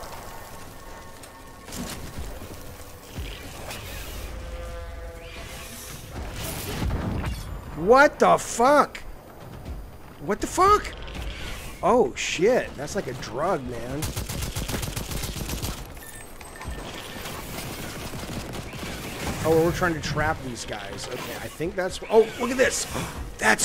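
Gunfire cracks and explosions boom in a video game.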